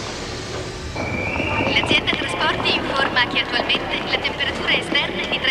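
A crowd murmurs and shuffles along a platform.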